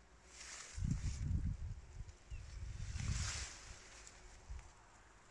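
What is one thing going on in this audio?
Wind gusts and rumbles outdoors.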